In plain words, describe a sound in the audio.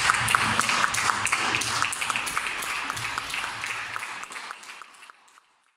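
A crowd applauds in an echoing hall, and the applause fades away.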